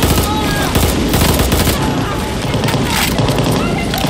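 Explosions boom and flames roar.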